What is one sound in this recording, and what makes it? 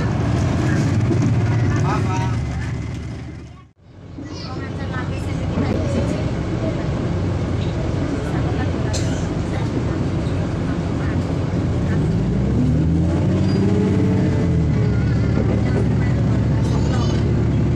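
A diesel railcar's Cummins engine drones as the train runs along.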